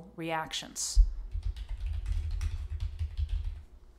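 Computer keys click rapidly as someone types.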